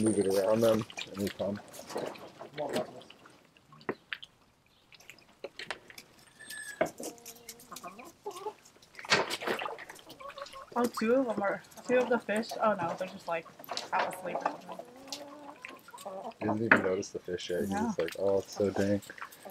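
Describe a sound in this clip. Ducks dabble and splash in shallow water.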